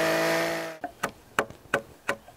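A chisel knocks sharply against wood several times.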